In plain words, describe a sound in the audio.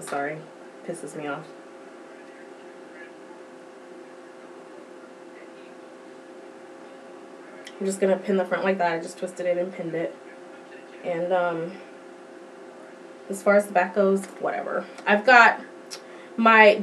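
A young woman talks calmly close to a microphone.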